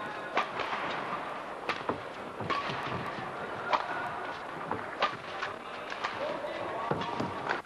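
A shuttlecock is struck sharply by rackets in a rally.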